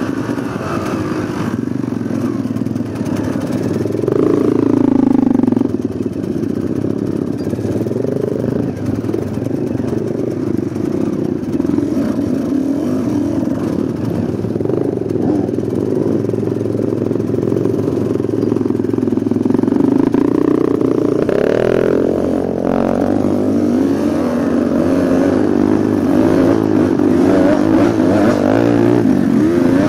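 Other dirt bike engines buzz nearby.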